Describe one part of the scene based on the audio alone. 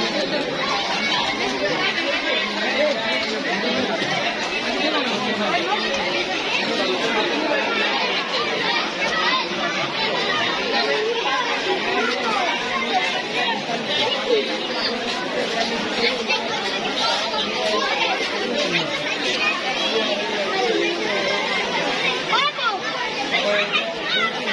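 A large crowd chatters and calls out loudly outdoors.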